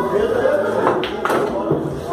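A cue ball strikes other pool balls with a sharp clack.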